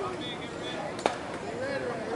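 A bat strikes a softball with a sharp crack.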